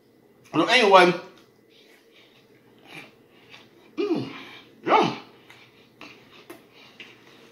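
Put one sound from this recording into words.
A man chews food with wet smacking sounds.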